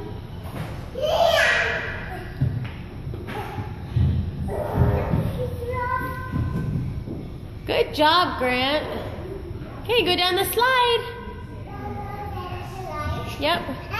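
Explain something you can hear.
A young child calls out loudly and playfully nearby.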